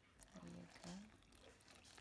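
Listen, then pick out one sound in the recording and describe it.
Liquid pours into flour.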